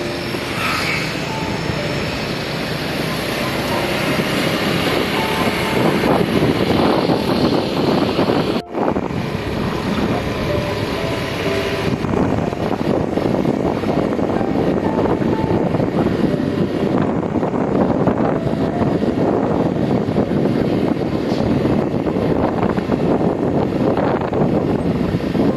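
A motorbike engine hums steadily while riding along a road.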